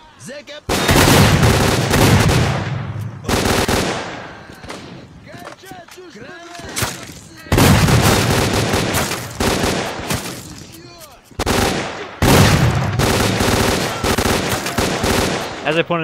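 Automatic gunfire rattles in loud rapid bursts.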